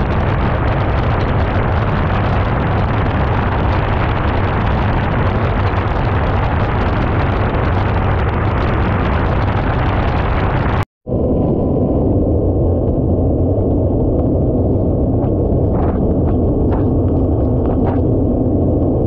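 Wind roars loudly against a microphone at high speed.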